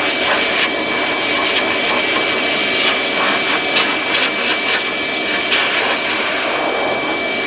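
A pet hair dryer blows with a steady, high whirring roar.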